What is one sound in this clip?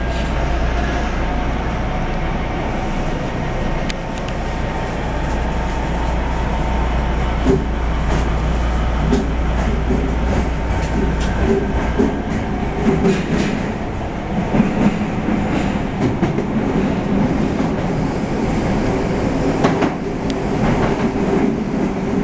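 A train rumbles and rattles steadily along its tracks.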